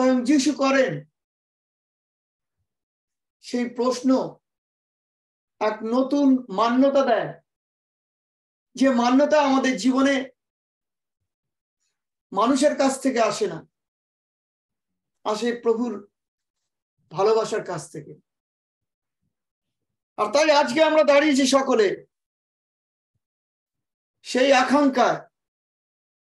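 A middle-aged man speaks calmly and clearly into a close microphone, in short phrases with pauses.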